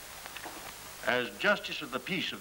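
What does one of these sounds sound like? An elderly man speaks gravely.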